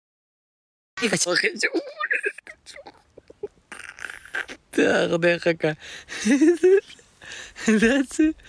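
A young man laughs and talks close to a microphone.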